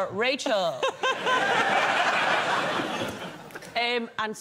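A studio audience laughs.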